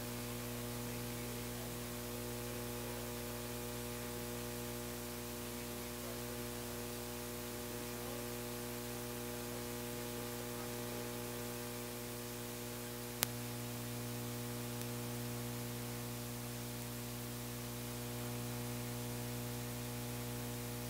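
A guitar amplifier gives out a steady, low droning hum.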